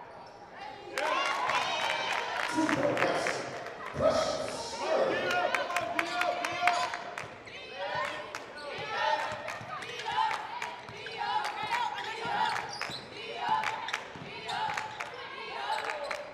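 A basketball bounces on a hard floor.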